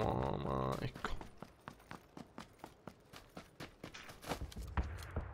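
Footsteps thud quickly and evenly on the ground.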